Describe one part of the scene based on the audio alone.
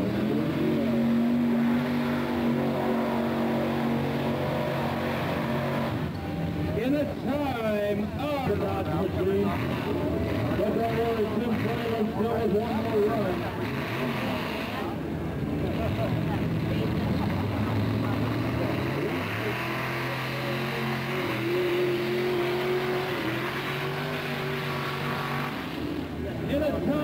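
A truck engine roars loudly as the truck churns through mud.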